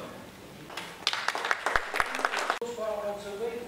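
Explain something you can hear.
An audience applauds briefly.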